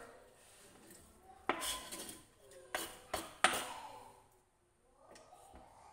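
A knife scrapes food off a board into a metal bowl.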